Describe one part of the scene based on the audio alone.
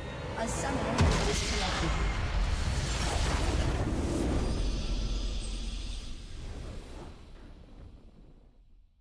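A triumphant victory fanfare swells and slowly fades.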